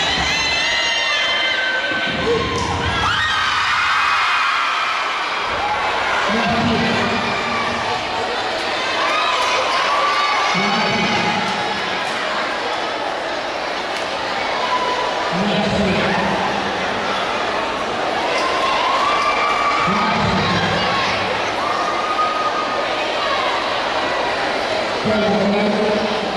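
Music plays loudly through loudspeakers in a large echoing hall.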